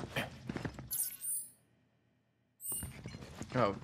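A soft high chime rings twice.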